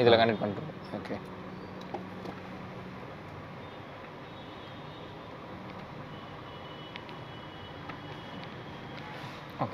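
Small plastic parts click and rattle as wires are handled up close.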